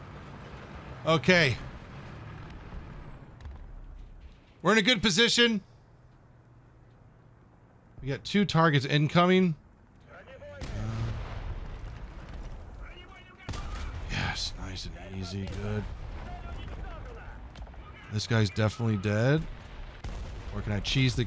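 Twin autocannons fire in short rapid bursts.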